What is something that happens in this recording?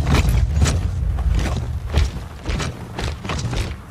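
Heavy boots tramp on a stone pavement.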